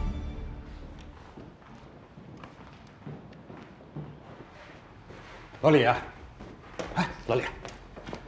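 Footsteps walk briskly across a hard floor.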